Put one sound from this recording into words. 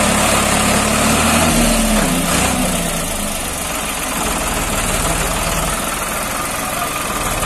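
A tractor diesel engine rumbles steadily close by.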